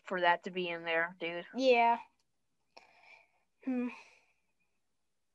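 A boy speaks with animation over an online call.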